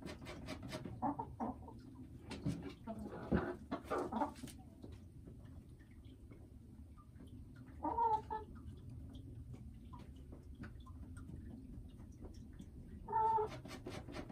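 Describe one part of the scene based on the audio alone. A hen clucks softly close by.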